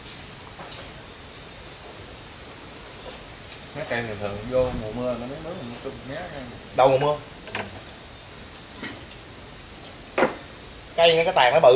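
Spoons clink against bowls.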